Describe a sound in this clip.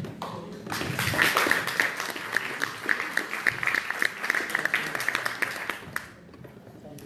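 An audience claps its hands in applause.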